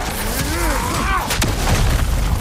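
A heavy hammer strikes a shield with a loud crash.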